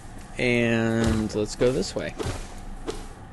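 Leaves burst and rustle as a bush is slashed.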